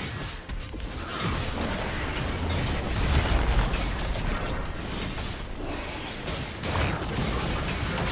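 Weapons clang and thud against each other.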